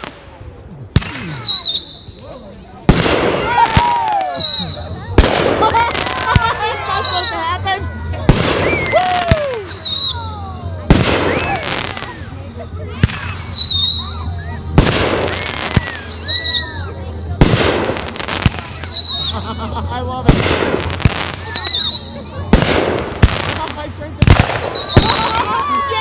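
Fireworks whistle as they shoot up.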